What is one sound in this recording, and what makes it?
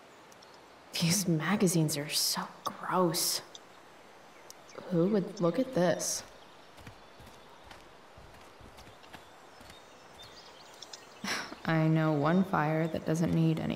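A young woman speaks calmly, close to a microphone, in short bursts.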